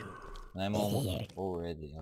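A sword strikes with a sharp thud.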